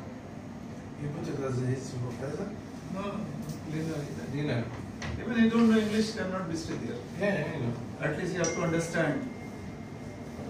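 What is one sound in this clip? A young man speaks calmly across a table.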